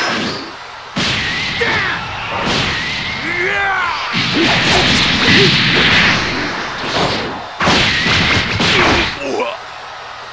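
Energy blasts whoosh and crackle.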